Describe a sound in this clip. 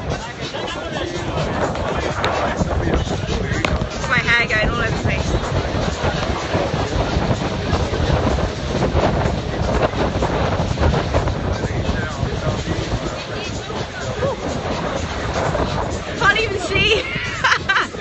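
Wind buffets loudly against a close microphone throughout.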